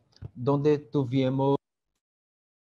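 A man speaks calmly and steadily through an online call.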